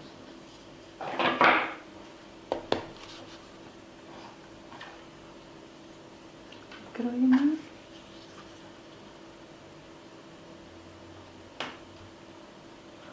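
Hands tap and press soft paste on a board with dull knocks.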